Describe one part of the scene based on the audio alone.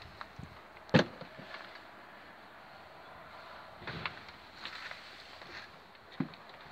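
A caravan door latch clicks and knocks several times, close by.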